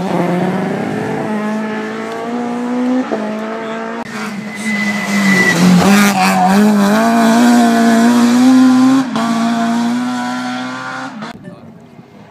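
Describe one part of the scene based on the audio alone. A rally car engine roars loudly as the car speeds past, close by, then fades.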